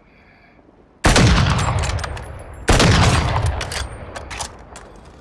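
A sniper rifle fires two loud shots that echo away.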